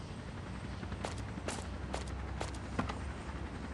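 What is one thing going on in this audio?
A car door opens and shuts with a click.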